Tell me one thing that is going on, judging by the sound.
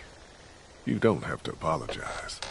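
A man speaks calmly.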